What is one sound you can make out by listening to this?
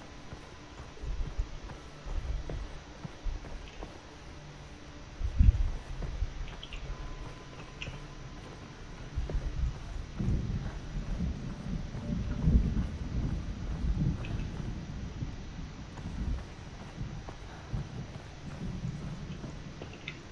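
Footsteps run across wooden boards.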